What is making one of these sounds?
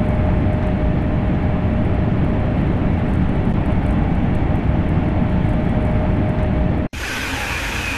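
A high-speed electric train rumbles along the rails at speed, heard from inside the cab.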